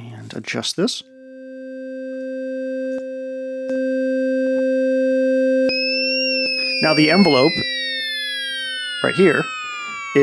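A synthesizer holds a steady low drone.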